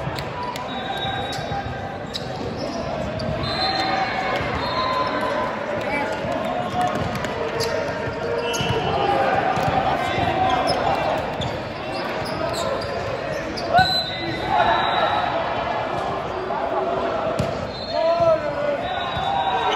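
Sneakers squeak on a wooden court floor in a large echoing hall.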